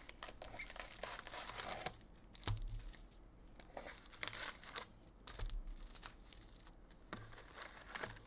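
Cardboard scrapes as a box is opened and packs are pulled out.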